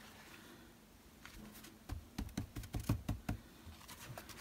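Hands pat and press a paper towel onto paper.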